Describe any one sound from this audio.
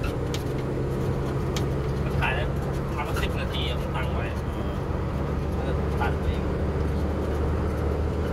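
A gear lever clunks as the driver shifts gears.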